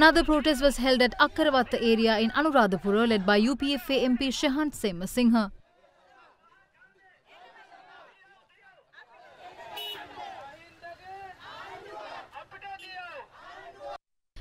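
A crowd of protesters chants and shouts outdoors.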